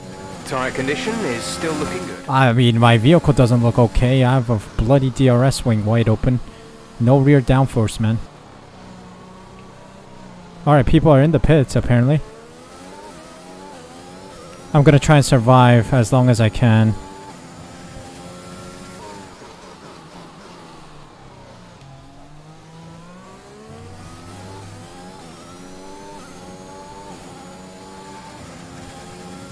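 A racing car engine whines and revs up and down through gear changes.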